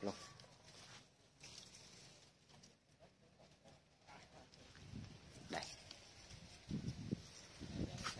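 Leaves rustle softly in the wind.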